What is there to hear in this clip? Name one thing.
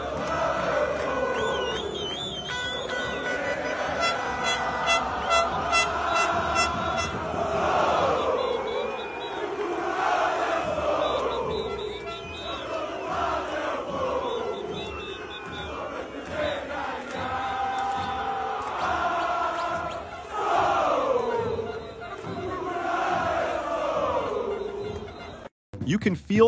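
A large crowd of fans chants and sings loudly outdoors.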